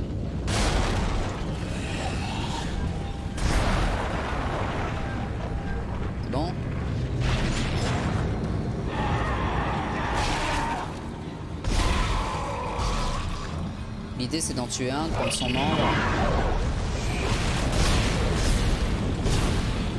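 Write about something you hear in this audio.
A futuristic gun fires loud, crackling blasts in repeated bursts.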